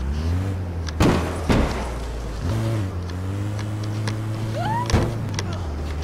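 A van bumps and thuds against walls.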